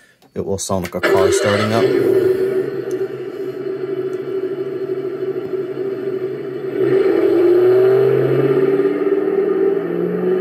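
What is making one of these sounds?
A recorded car engine idles and revs through a small tinny speaker.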